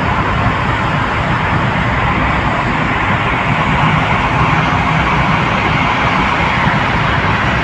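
Tyres roar steadily on the road in an echoing tunnel.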